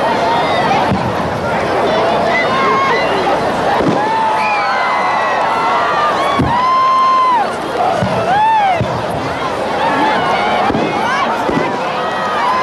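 Fireworks burst with loud bangs.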